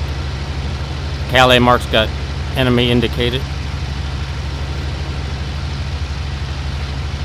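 An aircraft engine drones steadily and low.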